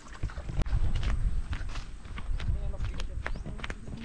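Footsteps swish through dry grass.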